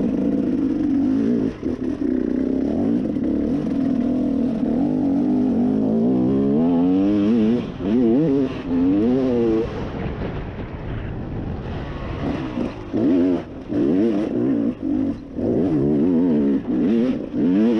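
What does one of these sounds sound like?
Tyres crunch over dirt and dry leaves.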